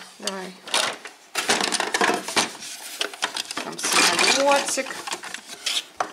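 Plastic toy pieces clatter inside a cardboard box.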